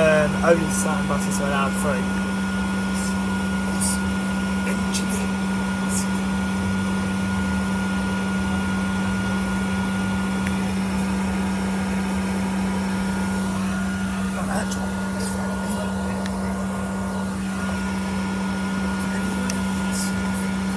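A bus engine hums steadily from inside.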